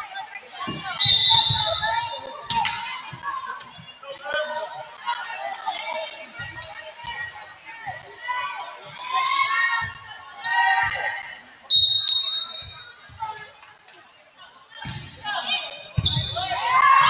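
A volleyball thuds as it is struck.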